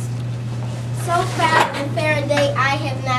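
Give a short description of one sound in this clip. A young boy speaks clearly, reciting lines.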